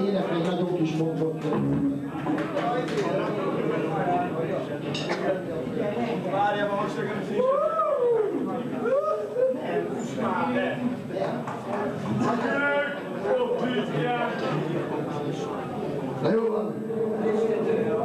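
A band plays loud rock music with electric guitars, live and slightly muffled.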